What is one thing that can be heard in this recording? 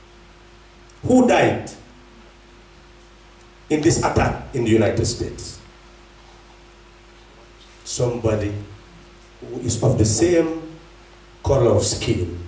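A man speaks slowly into a microphone over a loudspeaker, with pauses between phrases.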